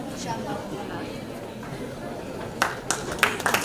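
A crowd of men and women murmurs in a large room.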